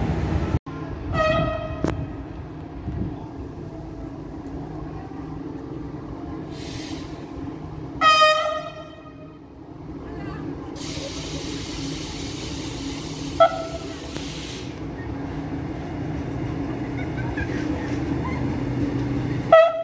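A train horn sounds several times.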